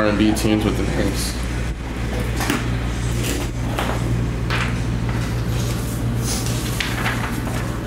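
A sheet of paper rustles in hands.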